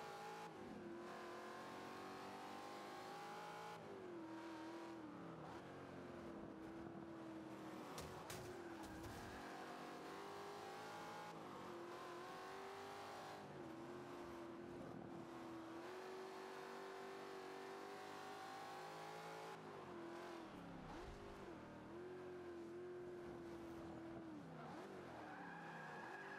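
A racing car engine roars, rising in pitch and dropping back with each gear change.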